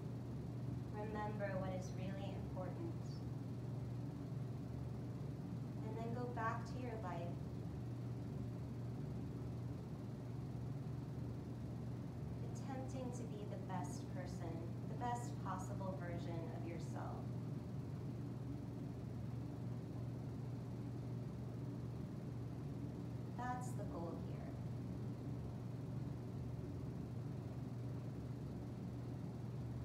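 Electric fans hum steadily.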